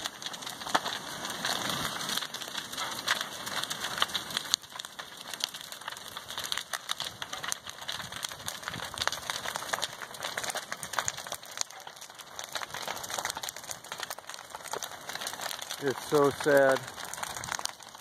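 Burning wood pops and snaps.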